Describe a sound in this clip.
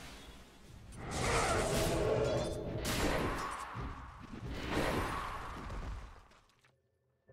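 Video game combat clashes and spell effects burst loudly.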